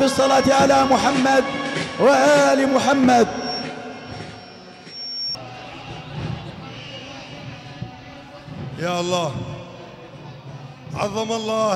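A man chants loudly through a loudspeaker.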